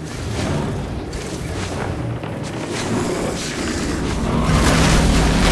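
Sharp whooshes rush past as a figure dashes through the air.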